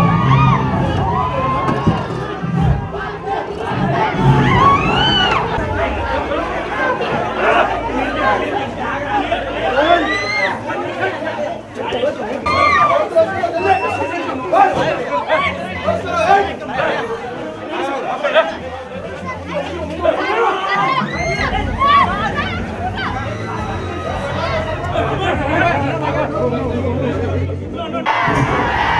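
A large crowd of young men shouts and cheers excitedly nearby.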